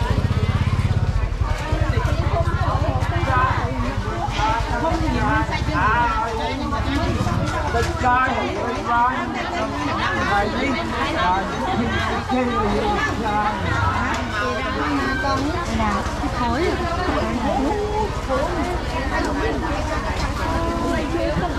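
A crowd of men and women chatter and call out nearby in a busy open-air space.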